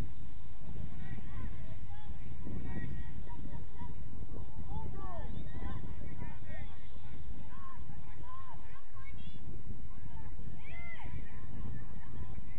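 Young players shout to each other in the distance.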